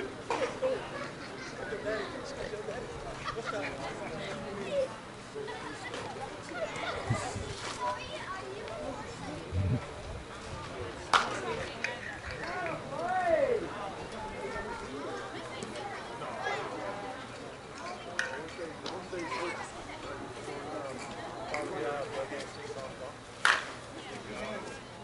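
Men and women talk and call out across an open field outdoors.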